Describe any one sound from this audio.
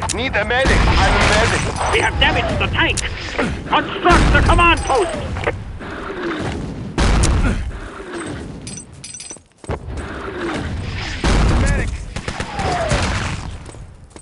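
Artillery shells whistle as they fall.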